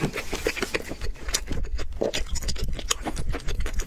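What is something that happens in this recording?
A spoon scrapes against a bowl.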